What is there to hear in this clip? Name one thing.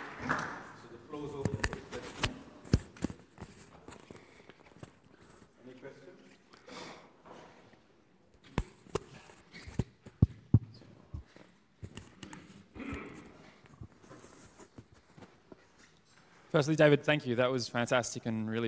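A man speaks through a microphone in an echoing hall, pausing often.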